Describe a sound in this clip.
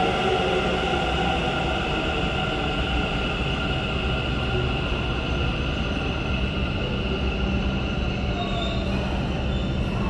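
A train's motor whines and slowly falls in pitch as it pulls away.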